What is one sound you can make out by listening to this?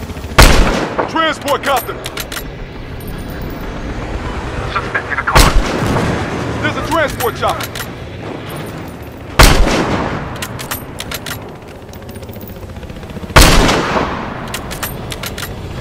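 A rifle bolt clicks as it is worked after each shot.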